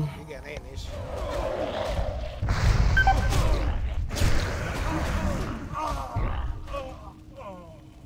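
Heavy blows and spell blasts crash during a fight with a roaring monster.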